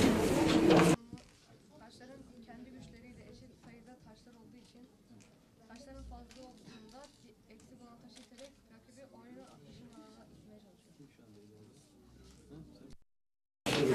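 Game pieces click softly on a board.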